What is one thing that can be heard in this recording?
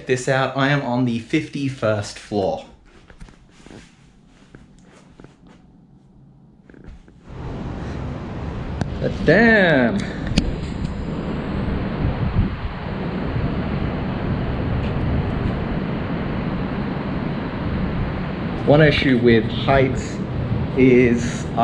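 A man speaks calmly and cheerfully close to the microphone.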